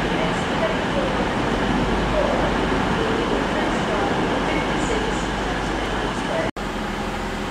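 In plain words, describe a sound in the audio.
A train rolls past along the tracks.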